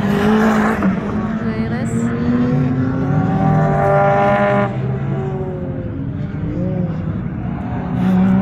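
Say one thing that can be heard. A car engine roars loudly, rising and falling in pitch.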